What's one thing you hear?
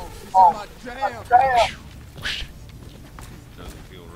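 A blaster gun fires in rapid bursts.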